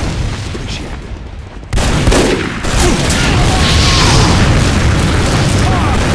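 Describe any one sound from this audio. Gunshots crack repeatedly.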